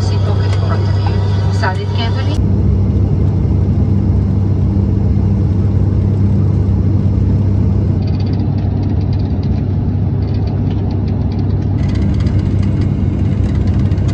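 Jet engines drone steadily, heard from inside an aircraft cabin.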